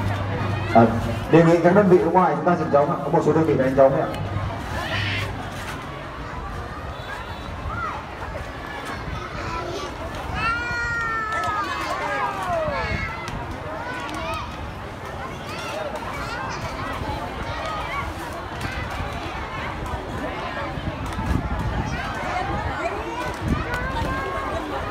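A large crowd of children chatters and calls out in the open air.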